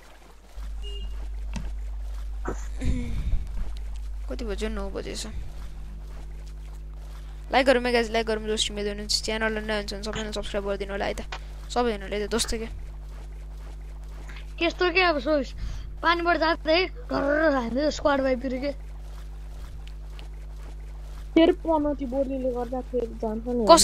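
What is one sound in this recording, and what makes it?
Water splashes softly with steady swimming strokes.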